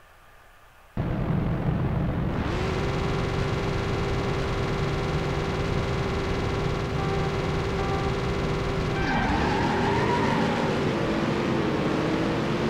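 Car engines idle with a steady low rumble.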